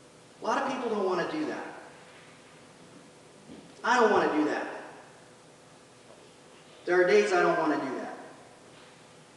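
A man speaks calmly in short phrases, with long pauses, echoing in a large hall.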